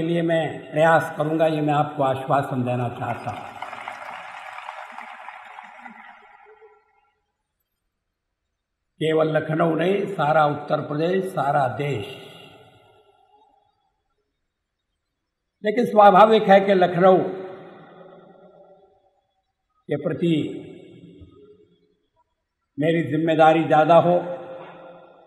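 A man speaks forcefully through a loudspeaker, echoing widely outdoors.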